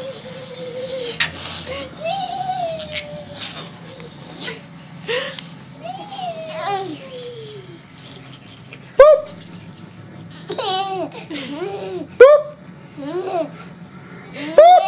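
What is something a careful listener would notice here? A baby laughs close by.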